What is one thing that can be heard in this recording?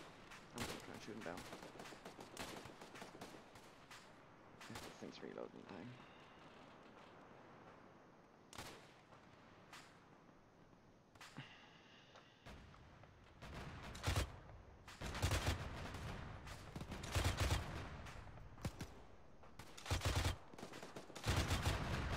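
Gunshots crack in rapid bursts nearby.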